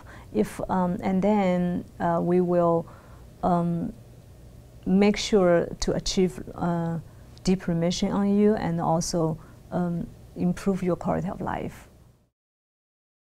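A woman speaks calmly and earnestly, close to a microphone.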